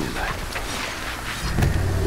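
Heavy blows land with sharp thuds during a fight.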